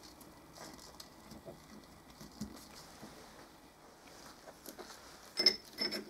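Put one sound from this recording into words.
Gloved hands handle a metal shaft with soft rubbing sounds.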